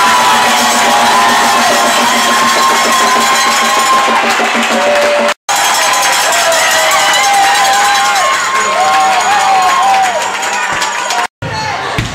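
A crowd of fans chants and sings loudly in a large echoing hall.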